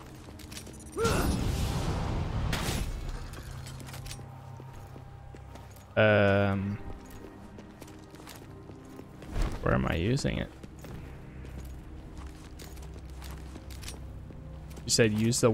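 Swords clash and slash in quick hits.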